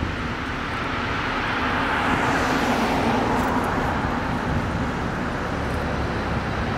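Cars drive past on a road close by.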